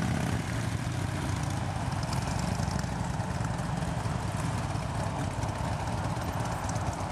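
Several motorcycle engines rumble and idle nearby.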